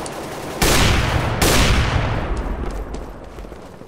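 Footsteps tap on stone in a video game.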